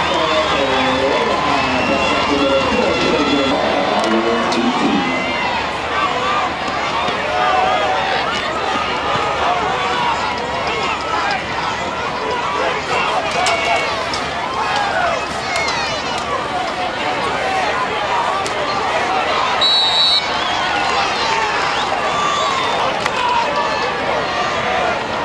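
A crowd of spectators cheers and chatters throughout.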